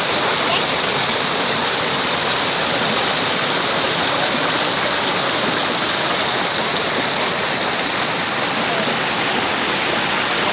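Water rushes and splashes steadily over rocks close by.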